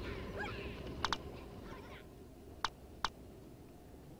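Short electronic clicks sound as menu options are chosen.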